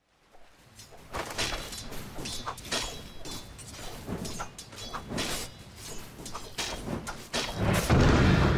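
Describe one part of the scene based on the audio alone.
Magic blasts crackle and weapons strike in a fast fight.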